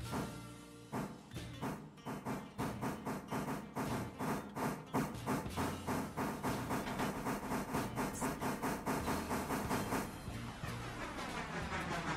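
A steam locomotive chuffs rhythmically, the puffs quickening as it pulls along.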